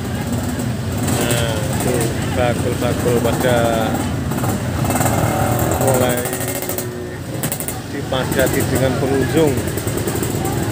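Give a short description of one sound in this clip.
Voices of passers-by talk and call out close by.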